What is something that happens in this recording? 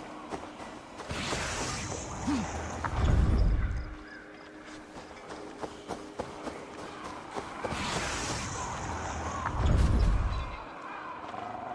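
A magical portal swells with a rushing whoosh and ends in a deep rumble.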